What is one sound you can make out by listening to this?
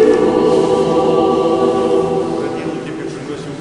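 Several men sing a chant together in a large echoing hall, then fall quiet.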